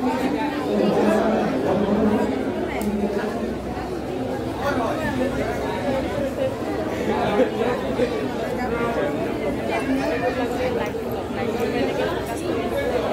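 A dense crowd of people chatters and murmurs.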